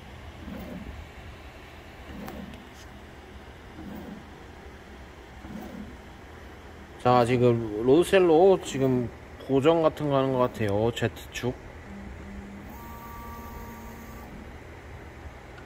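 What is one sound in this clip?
A 3D printer's motors hum and whir as the print head moves.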